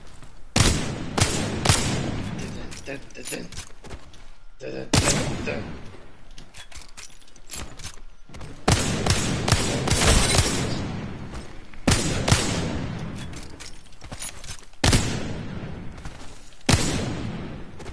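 Gunshots fire in loud single bangs with a short echo.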